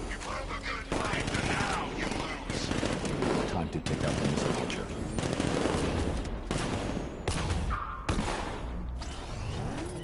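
Gunfire and explosions crash repeatedly.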